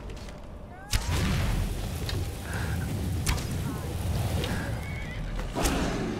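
A dragon roars as it breathes a rushing blast of frost.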